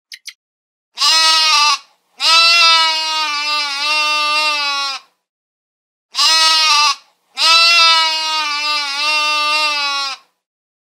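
Sheep bleat loudly, long and wavering.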